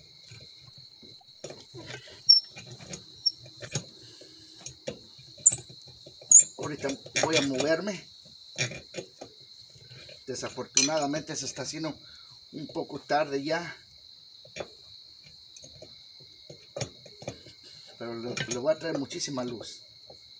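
Metal tools clink and scrape against a wheel hub.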